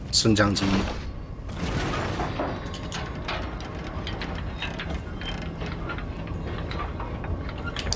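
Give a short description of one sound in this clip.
A metal cage lift creaks and rumbles as it rises.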